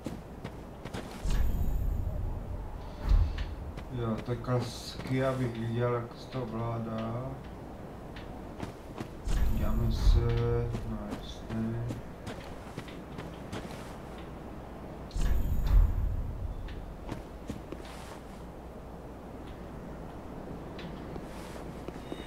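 Footsteps tread slowly over stony ground.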